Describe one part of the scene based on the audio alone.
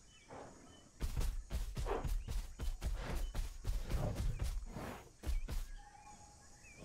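A dinosaur's feet thud on grass as it runs.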